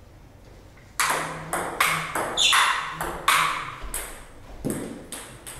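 A ping pong ball clicks back and forth off paddles and a table in a quick rally.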